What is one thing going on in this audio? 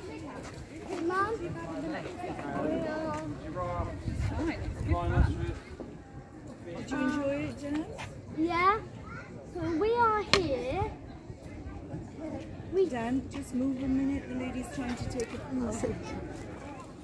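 A young child speaks excitedly nearby.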